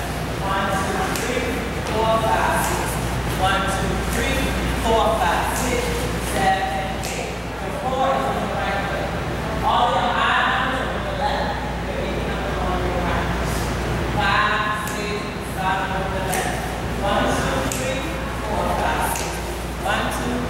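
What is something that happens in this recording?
A woman calls out dance steps with animation in a large echoing room.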